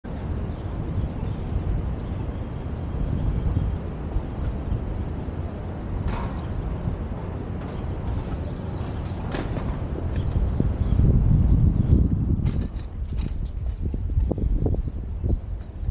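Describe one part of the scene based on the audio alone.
Bicycle tyres hum over pavement.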